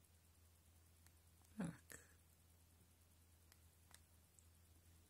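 Keys on a phone keypad click softly.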